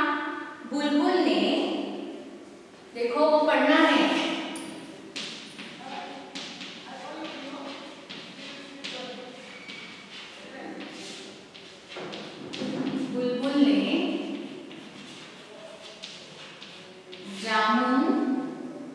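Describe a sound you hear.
A woman speaks clearly and steadily, as if teaching, close by.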